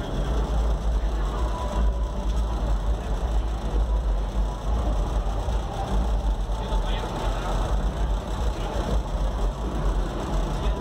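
Subwoofers boom with loud, pounding bass music.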